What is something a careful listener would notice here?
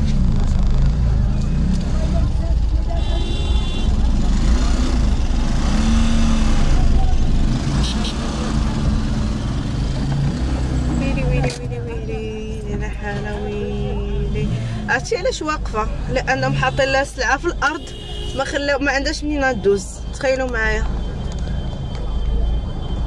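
A crowd of people chatters outside, muffled through the car windows.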